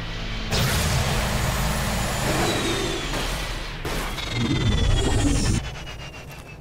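A vehicle engine rumbles and roars while driving fast.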